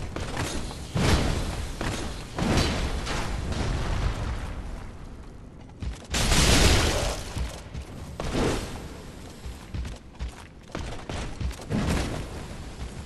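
Metal weapons clash and strike.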